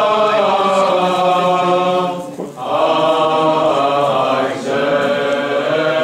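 A choir of women chants slowly in long held notes.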